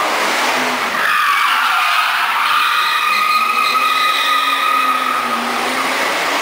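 A car engine revs and roars nearby.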